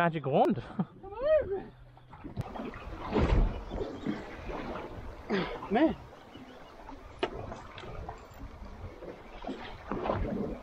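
Water splashes against a small boat's hull.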